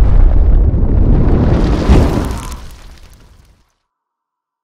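A deep fiery whoosh roars and slowly fades away.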